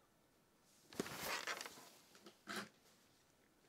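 Fabric rustles close by.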